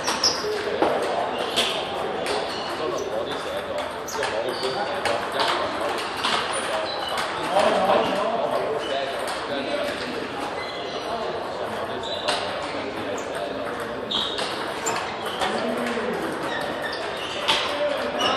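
A crowd of players murmurs in the background.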